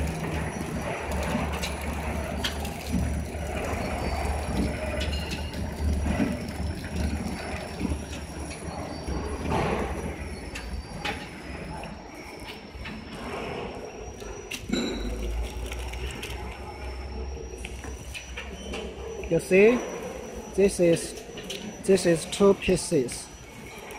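A packaging machine hums and whirs steadily.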